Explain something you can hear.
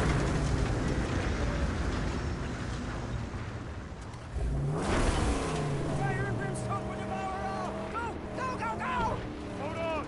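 Tyres crunch and skid on gravel and dirt.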